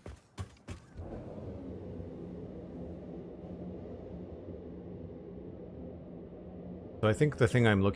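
A transport tube hums steadily as something travels through it.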